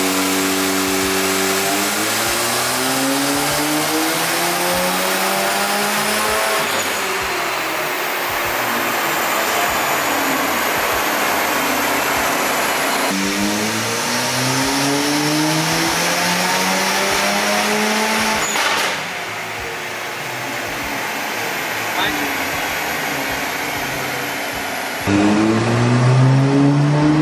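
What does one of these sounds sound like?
A car engine revs up hard again and again, then drops back.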